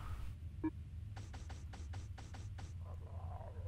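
Menu selections tick softly.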